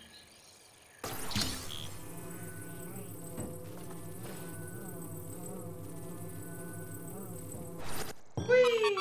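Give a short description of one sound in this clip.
A steady electronic hum drones from a game.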